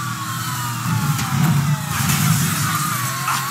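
A car crashes through a fence and debris clatters.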